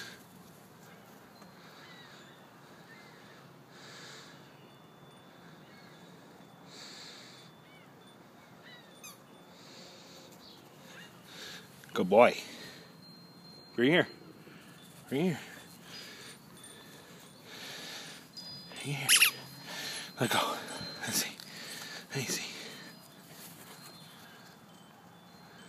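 A dog runs across grass.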